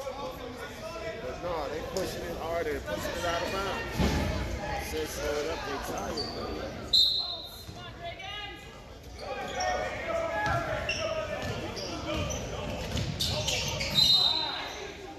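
A crowd of spectators talks and murmurs in a large echoing gym.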